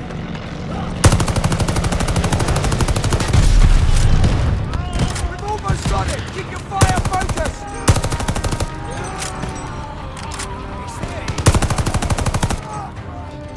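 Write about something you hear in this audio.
A rifle fires in rapid bursts close by.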